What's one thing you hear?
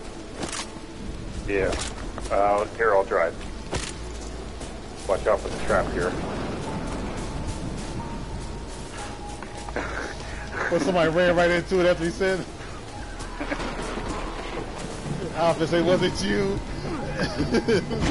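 Footsteps rustle through dry leaves.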